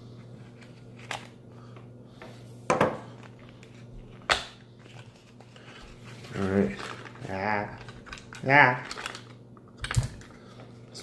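A cardboard box rustles and clicks as hands open it.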